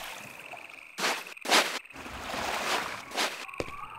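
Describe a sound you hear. Footsteps tread on soft ground.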